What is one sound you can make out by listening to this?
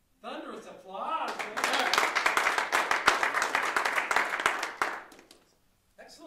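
A small audience claps and applauds.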